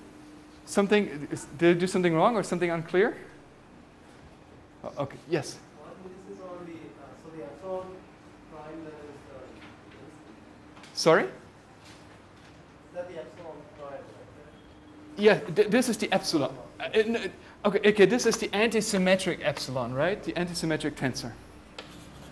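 A middle-aged man lectures calmly through a clip-on microphone.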